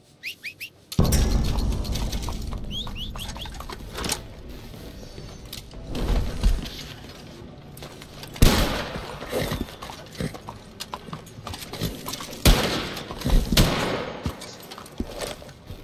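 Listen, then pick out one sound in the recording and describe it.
A horse's hooves clop slowly on stone paving.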